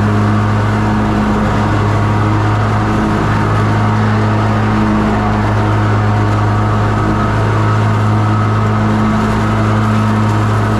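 A lawn mower engine drones loudly and steadily up close.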